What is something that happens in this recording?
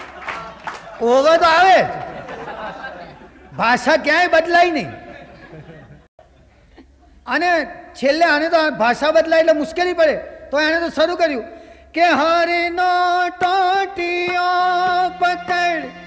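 A man sings loudly with a strong, drawn-out voice.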